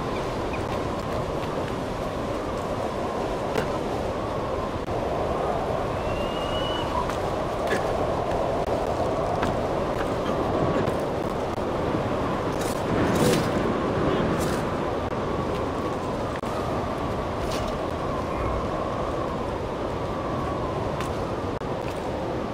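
Footsteps and scrambling hands knock against stone now and then.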